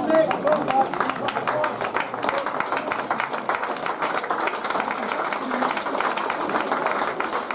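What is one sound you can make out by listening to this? A crowd of men chatters and shouts nearby outdoors.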